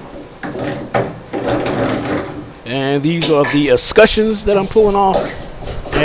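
A metal handle squeaks and scrapes as it is pulled off its stem.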